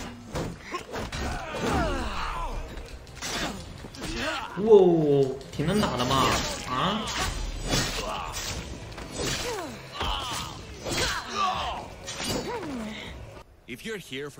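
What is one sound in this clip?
Blades clash and strike in quick bursts.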